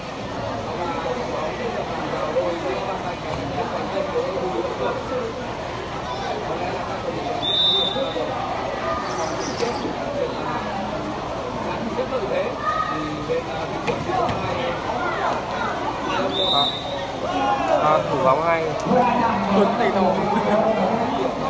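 A large outdoor crowd chatters and murmurs loudly.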